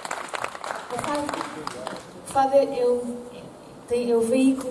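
A woman sings through a microphone.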